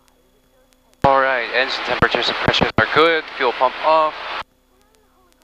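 A young man speaks with animation over a headset intercom.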